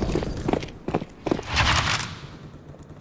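A stun grenade bursts with a loud bang.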